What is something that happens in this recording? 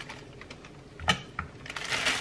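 Raw meat thuds onto a wooden board.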